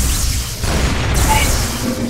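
Electricity crackles and buzzes in sharp bursts.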